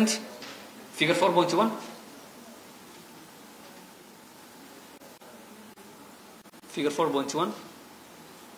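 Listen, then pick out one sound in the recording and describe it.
A man speaks calmly into a microphone in short phrases with long pauses.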